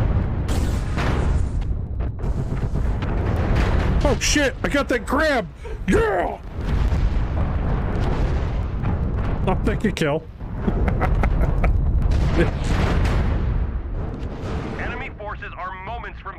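Gunfire and explosions boom from a game.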